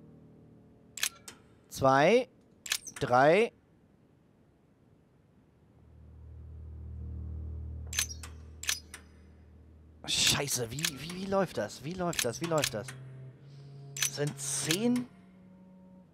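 Metal puzzle dials click and clack as they turn.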